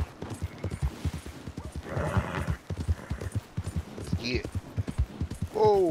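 Horse hooves pound steadily at a fast gallop.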